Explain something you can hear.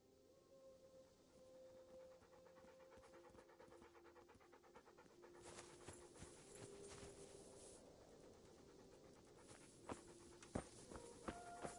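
Footsteps tread steadily over grass and a dirt path.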